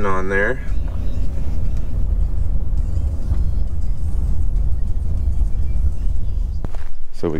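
A car rumbles steadily along a gravel road.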